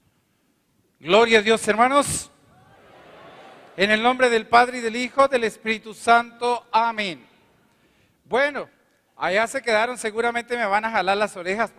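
A middle-aged man speaks into a headset microphone with animation, heard over loudspeakers in a large hall.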